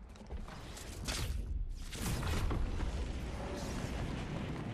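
Wind rushes loudly past during a fast glide through the air.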